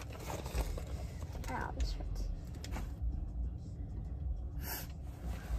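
A paper envelope rustles as it is opened.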